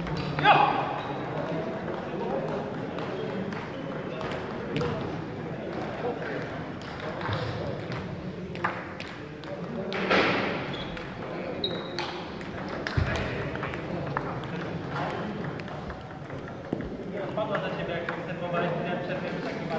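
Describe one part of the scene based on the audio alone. A ping-pong ball clicks back and forth across a table.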